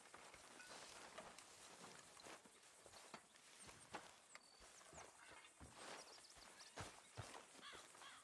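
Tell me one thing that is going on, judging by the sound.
Footsteps walk over grass.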